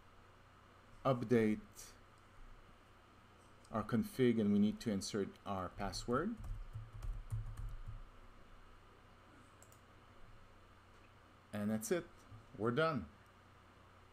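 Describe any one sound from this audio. A man speaks calmly and haltingly, close to a microphone, in brief bursts with pauses.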